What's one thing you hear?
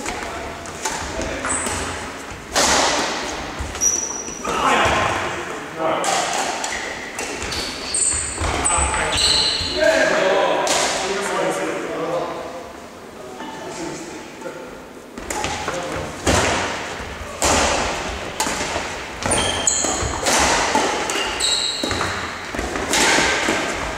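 Sports shoes squeak and thud on a wooden floor.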